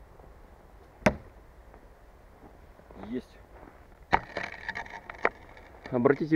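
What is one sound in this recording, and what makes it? Knives thud sharply into a wooden target.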